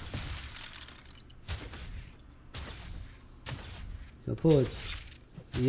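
A blade swings and strikes again and again with sharp whooshing hits.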